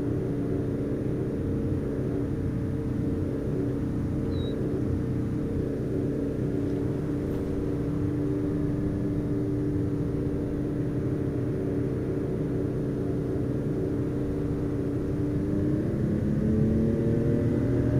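A car engine hums steadily and rises in pitch near the end.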